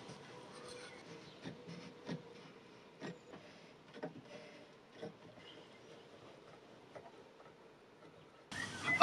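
Metal clamps click and knock against wood.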